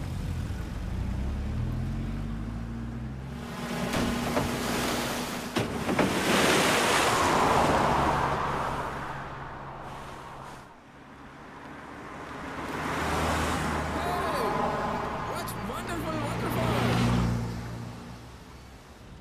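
Car engines rumble as vehicles drive along a rough track.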